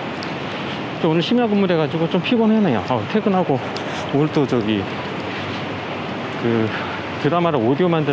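A middle-aged man talks close to the microphone outdoors.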